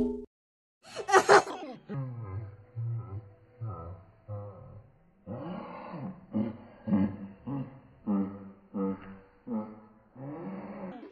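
A young child laughs close by.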